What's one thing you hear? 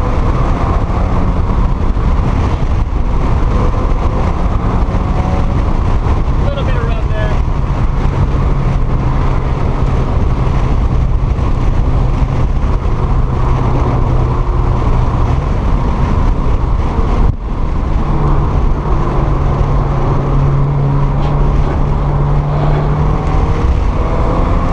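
Tyres roar on the road surface.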